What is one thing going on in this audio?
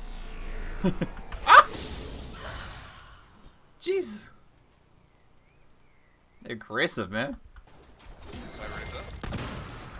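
Fighting noises and magical blasts burst out in short bursts.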